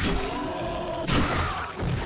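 A blade strikes flesh with a wet thud.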